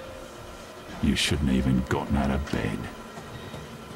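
A middle-aged man speaks briefly and calmly, close to a microphone.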